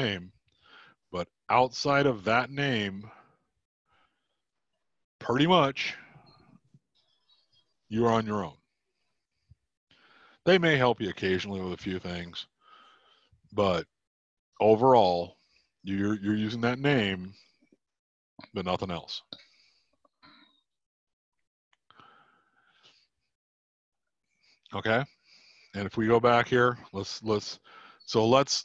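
A middle-aged man talks calmly into a microphone over an online call, in short bursts with pauses.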